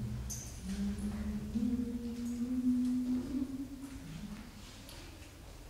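A mixed choir sings slowly in a large echoing hall.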